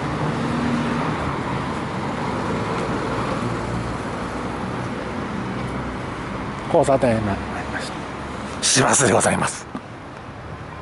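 Wind buffets a microphone outdoors.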